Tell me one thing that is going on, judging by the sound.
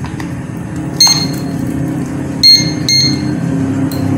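An air conditioner beeps sharply a few times.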